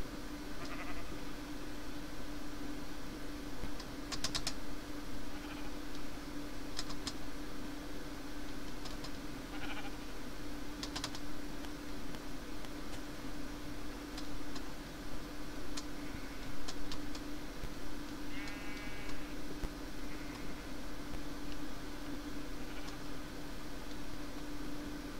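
Footsteps crunch softly on grass and dirt.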